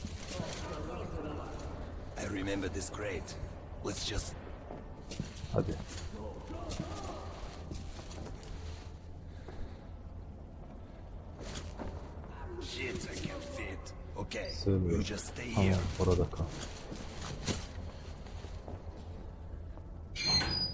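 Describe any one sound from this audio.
Heavy footsteps thud on a hard floor.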